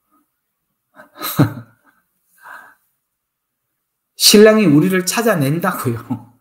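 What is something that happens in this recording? A middle-aged man speaks with animation into a close microphone, as on an online call.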